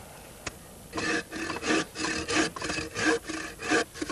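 A hand saw cuts through a log with quick, steady strokes.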